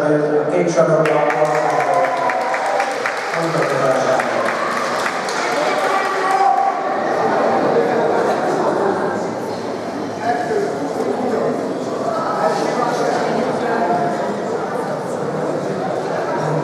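A crowd applauds and cheers in a large echoing hall.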